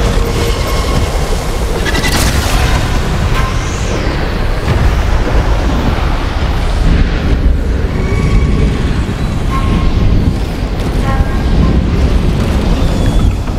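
Wind rushes and roars steadily.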